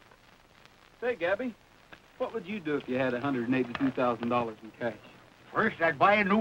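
Men talk and call out outdoors.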